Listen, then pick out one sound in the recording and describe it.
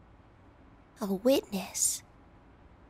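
A young woman makes a short, high voiced exclamation.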